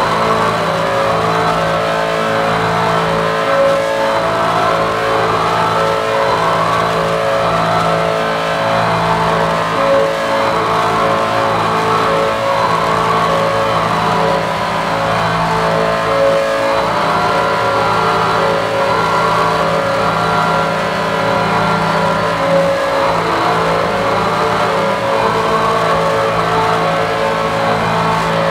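A pulsing electronic tone repeats in an even rhythm.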